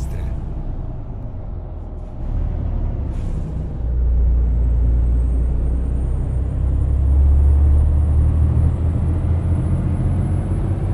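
A truck engine rumbles low and steady, growing louder as it picks up speed.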